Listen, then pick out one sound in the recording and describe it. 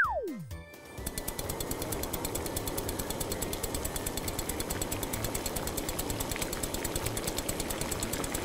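Fuel gurgles steadily from a pump nozzle into a tank.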